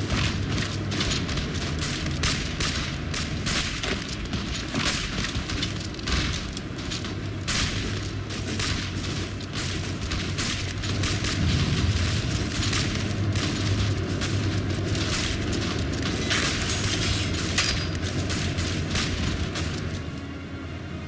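Rifle and artillery fire crackle and thud in a battle.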